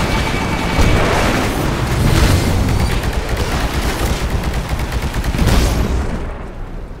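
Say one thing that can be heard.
Heavy gunfire blasts loudly and rapidly.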